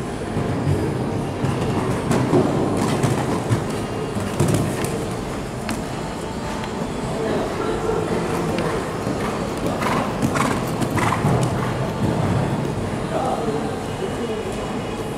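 Horse hooves thud on soft sand.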